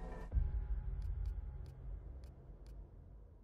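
Soft menu clicks tick several times in quick succession.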